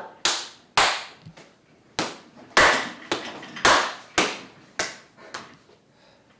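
Hands slap together rapidly in a clapping game.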